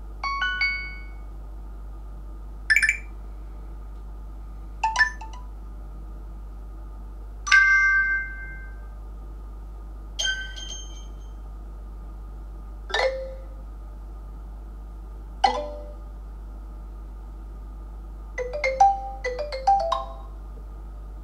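A phone plays short chiming ringtone snippets through its small speaker, one after another.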